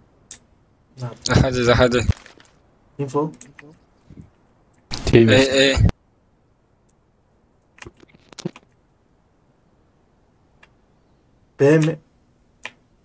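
A young man talks with animation in short bursts, close to a microphone.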